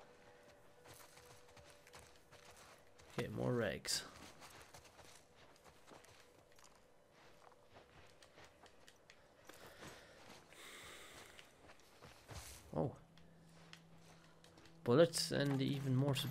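Footsteps shuffle softly over debris.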